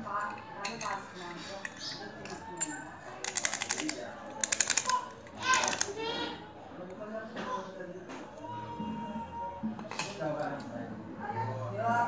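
A metal padlock clicks and rattles in someone's hands.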